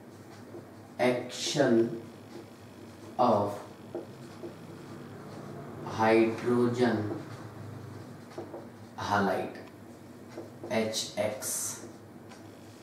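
A man speaks calmly and clearly, explaining in short phrases.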